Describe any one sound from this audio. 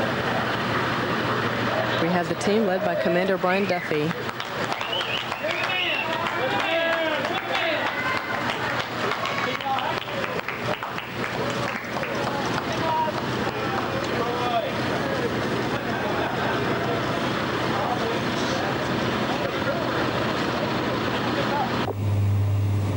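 A crowd of people cheers and calls out nearby.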